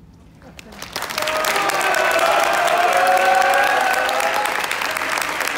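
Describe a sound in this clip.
A large choir sings together in an echoing hall.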